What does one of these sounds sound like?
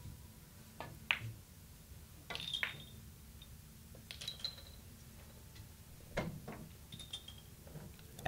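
Billiard balls clack against each other and the cushions.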